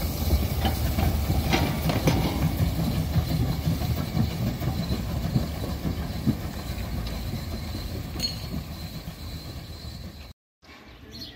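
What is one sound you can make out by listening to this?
A steam locomotive chugs past at close range with a deep, rumbling puffing.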